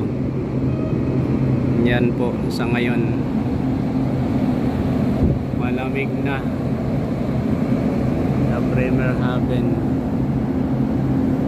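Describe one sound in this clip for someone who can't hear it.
A ship's engine hums steadily and low.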